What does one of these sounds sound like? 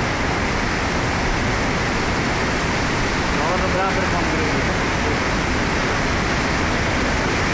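Muddy floodwater rushes and roars loudly past.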